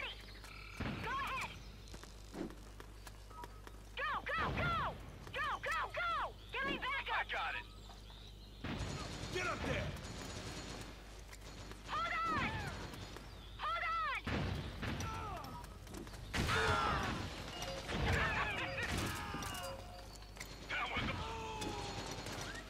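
A young man talks with animation into a headset microphone, close by.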